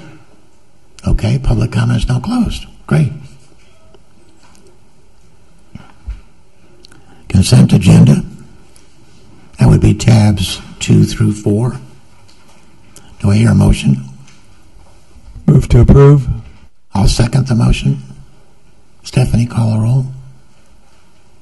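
An elderly man speaks calmly through a microphone in short phrases.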